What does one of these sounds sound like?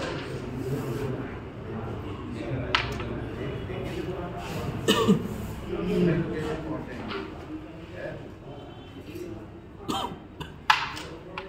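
A crowd of men murmurs and chatters close by.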